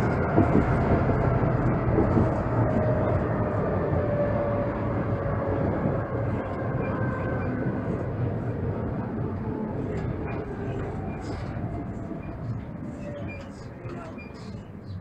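A tram's motor whines, slowly falling in pitch as the tram slows.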